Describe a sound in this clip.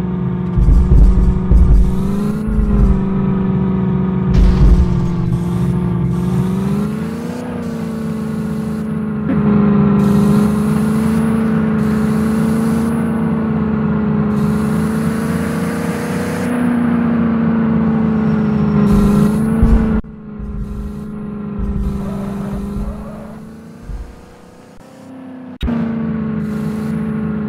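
A car engine hums steadily, rising and falling in pitch as the car drives.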